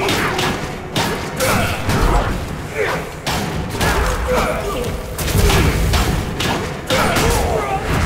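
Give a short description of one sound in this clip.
Metal blades clash and strike in quick blows.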